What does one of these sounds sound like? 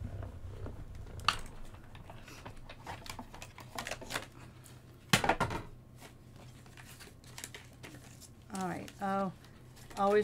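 Paper and thin plastic rustle and crinkle as they are handled.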